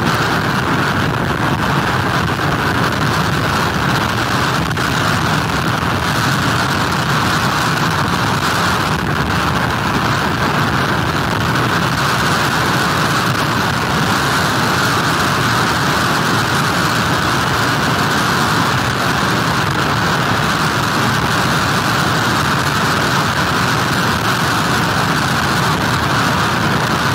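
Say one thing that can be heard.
Heavy rain pours down.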